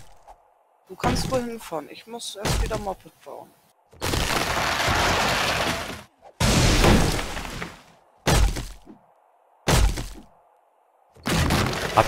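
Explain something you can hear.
An axe chops into a tree trunk with dull thuds.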